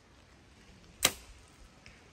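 A bowstring snaps as an arrow is released.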